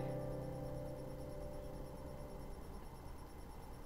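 An acoustic guitar chord rings out and slowly fades.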